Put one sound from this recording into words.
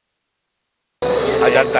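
A crowd murmurs in a large room.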